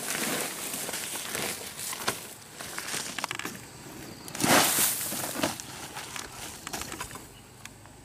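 A plastic sack rustles and shakes.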